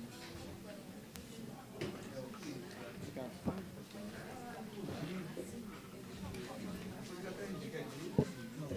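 Several men and women chat in overlapping voices nearby.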